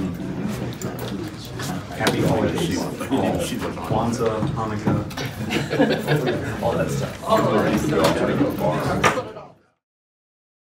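Several adult men and women chatter at once nearby.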